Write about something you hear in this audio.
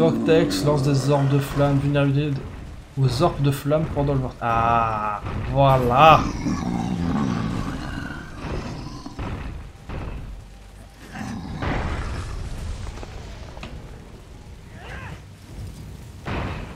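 Fiery blasts burst with loud whooshes.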